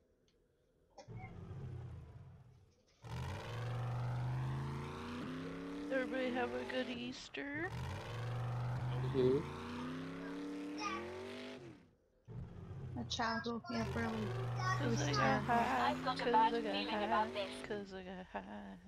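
An engine revs and roars as a vehicle drives, rising in pitch in repeated bursts.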